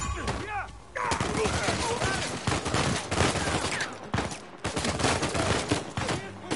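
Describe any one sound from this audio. Gunshots crack out in rapid bursts.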